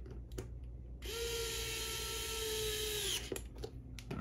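An electric screwdriver whirs steadily, then stops.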